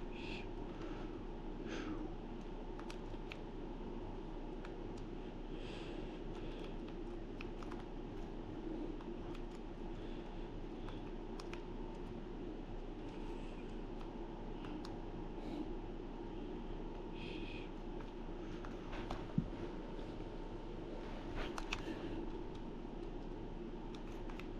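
Buttons on a handheld console click softly.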